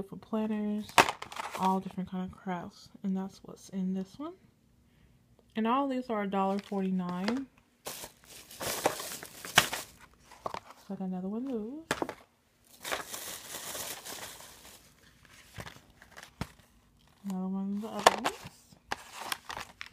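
Plastic packaging crinkles as it is handled.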